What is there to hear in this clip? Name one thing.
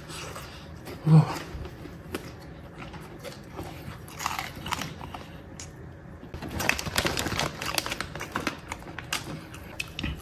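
Paper wrapping rustles and crinkles.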